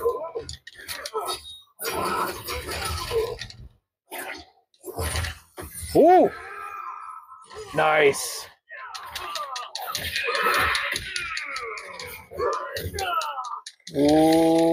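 Video game fighters grunt and yell.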